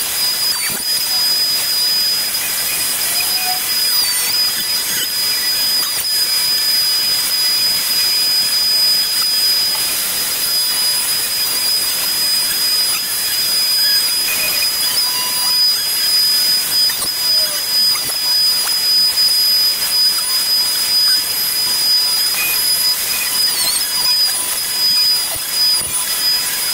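A dust extractor hums and roars steadily.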